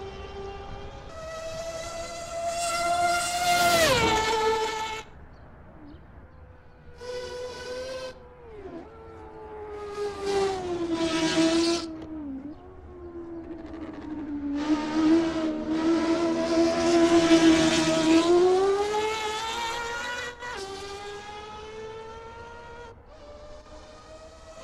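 A race car engine screams loudly, rising and falling in pitch as it speeds past and shifts gears.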